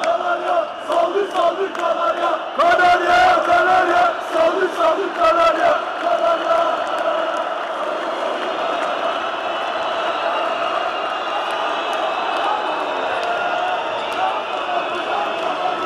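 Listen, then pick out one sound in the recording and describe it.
A large crowd roars and cheers in a big echoing hall.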